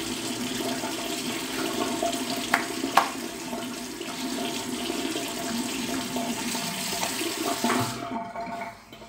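Wet hands rub over a face.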